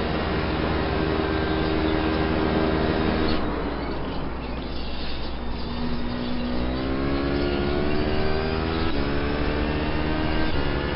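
A racing car engine roars loudly, drops away as it slows, then climbs in pitch again and shifts gear.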